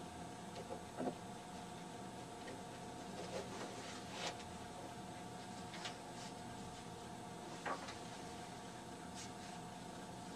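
Paper rustles and crackles as it is handled.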